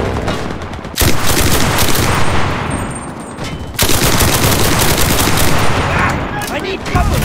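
A submachine gun fires rapid, loud bursts.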